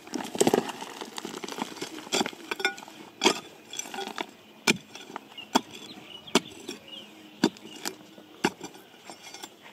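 A small hand pick chops into stony ground.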